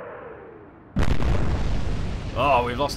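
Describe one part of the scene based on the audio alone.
Big naval guns fire with a thunderous boom.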